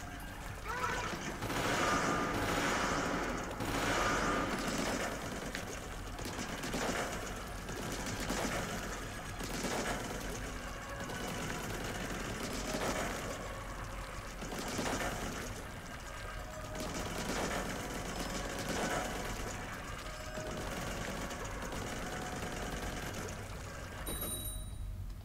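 Game ink shots splatter and burst.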